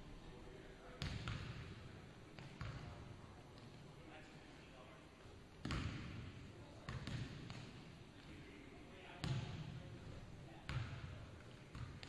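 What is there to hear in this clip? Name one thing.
A basketball bounces on a wooden floor, echoing through a large hall.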